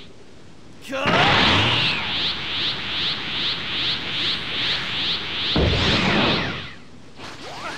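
A pulsing energy charge roars and crackles loudly.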